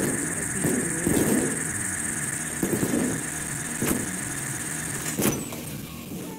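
A drill whirs against a metal door.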